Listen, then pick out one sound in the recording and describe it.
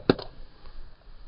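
A golf driver strikes a ball off a tee with a sharp crack.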